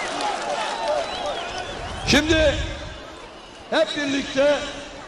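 A group of young men shout and cheer outdoors from a distance.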